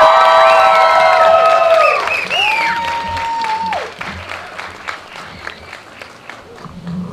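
People clap their hands in applause outdoors.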